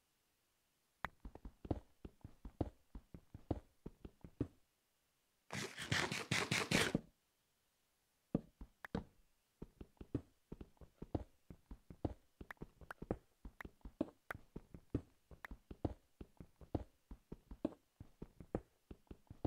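A pickaxe chips and breaks stone blocks in quick, repeated knocks.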